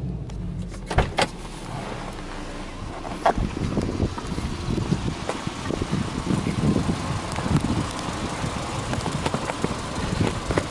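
A car engine idles steadily nearby.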